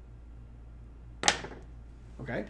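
A game piece clicks onto a table.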